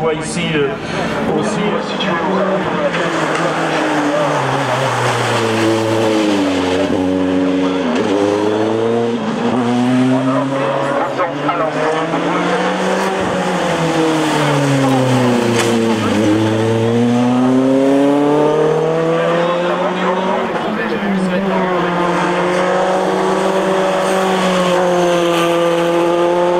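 A racing car engine screams at high revs, rising and falling as it shifts gears.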